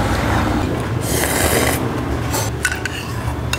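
A young woman slurps soup from a bowl close to a microphone.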